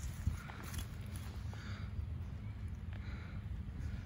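A glass jar clinks as it is picked up from the ground.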